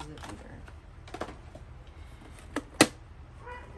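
Plastic objects knock against a hard surface.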